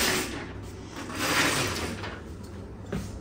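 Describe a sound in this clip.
A window blind rattles as its cord is pulled.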